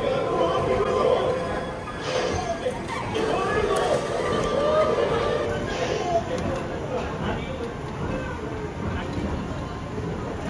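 Cheerful electronic music plays from a nearby loudspeaker.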